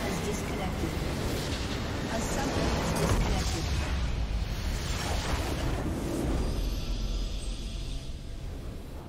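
A structure explodes with a loud rumbling crash.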